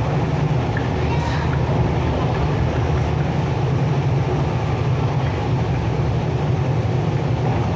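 An electric commuter train rumbles along the track at speed, heard from inside the carriage.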